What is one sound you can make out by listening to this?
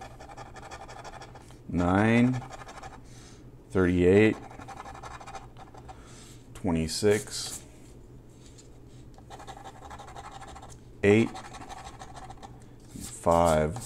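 A coin scratches across a card with a dry rasping sound.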